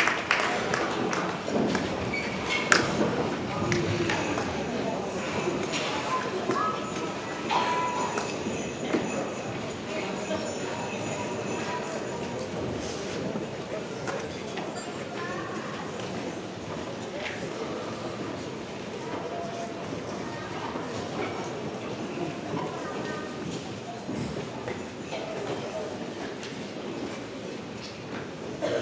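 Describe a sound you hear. A woman sings into a microphone over the band.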